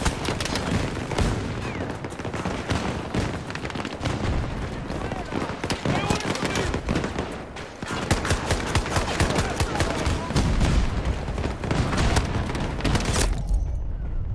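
Gunfire and explosions crackle and boom all around.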